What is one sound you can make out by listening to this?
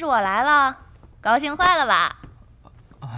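A young woman speaks with animation in a high, bright voice.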